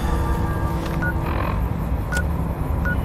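An electronic device beeps shortly.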